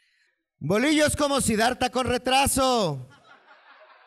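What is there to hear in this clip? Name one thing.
A man reads out loud through a microphone, with a reverberant echo.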